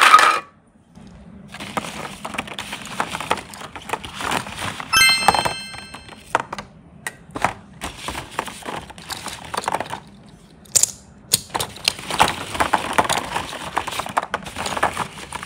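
Hollow plastic balls rattle and clatter as a hand rummages through them.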